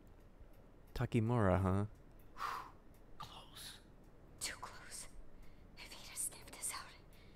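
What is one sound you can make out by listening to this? A woman speaks in a hushed, tense voice.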